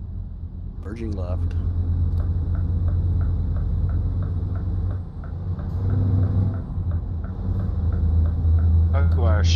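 A truck's indicator ticks rapidly.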